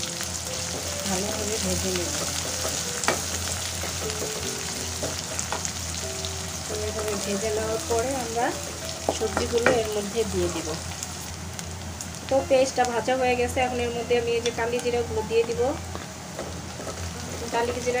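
A wooden spatula scrapes against a metal pan.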